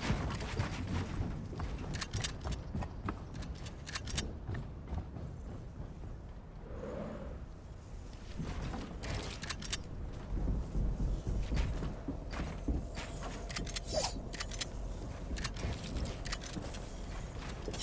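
Building pieces snap into place in quick bursts of sharp clicks.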